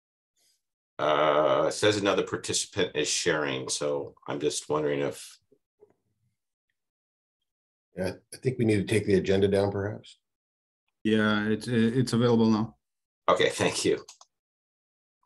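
A middle-aged man speaks calmly over an online call.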